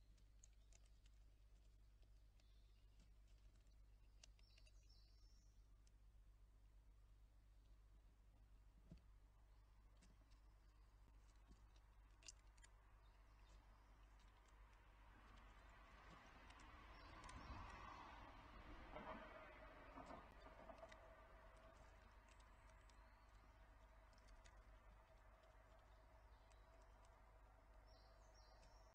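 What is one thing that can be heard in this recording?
A squirrel nibbles seeds on a feeder.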